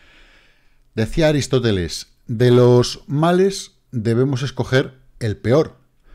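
A middle-aged man speaks with animation, close to a microphone.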